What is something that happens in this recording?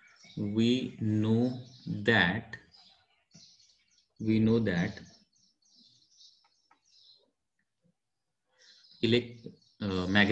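A man speaks calmly into a close microphone, explaining in pauses.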